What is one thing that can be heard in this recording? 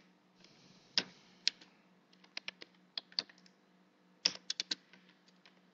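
Keys click on a computer keyboard as someone types.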